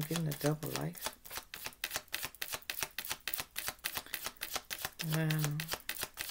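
Playing cards riffle and flick rapidly as they are shuffled.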